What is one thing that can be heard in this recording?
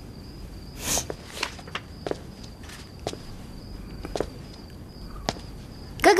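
Footsteps approach across a floor indoors.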